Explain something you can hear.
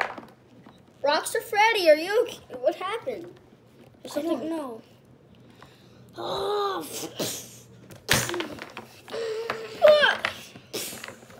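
A young child talks with animation close by, in a high voice.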